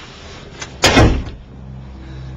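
A door bangs open nearby.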